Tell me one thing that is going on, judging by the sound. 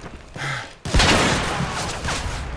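A gun fires rapid loud shots.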